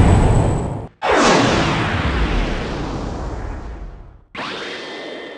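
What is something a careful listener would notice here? A spaceship whooshes past.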